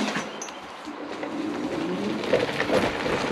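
An electric motor whines as a scooter pulls away.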